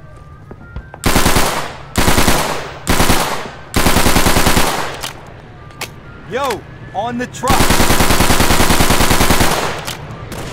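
A submachine gun fires loud rapid bursts.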